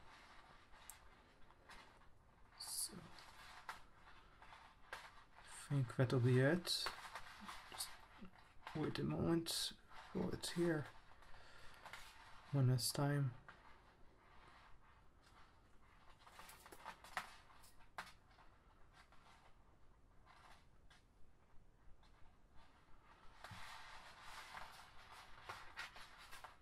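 Plastic cords rustle and tick as fingers weave them close by.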